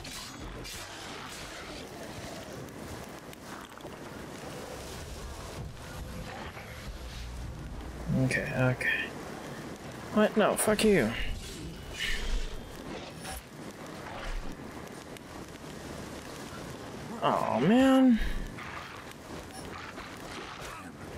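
Swords clash and swish in a fight.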